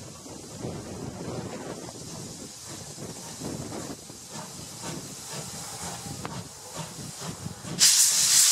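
Wheels clank over rail joints.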